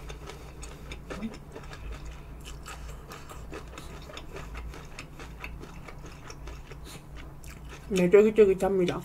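A woman chews food with soft, wet sounds close to a microphone.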